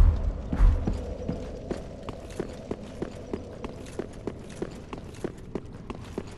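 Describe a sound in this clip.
Footsteps thud steadily on stone in a large echoing hall.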